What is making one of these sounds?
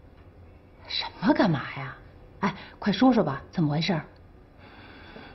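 A woman asks insistently nearby.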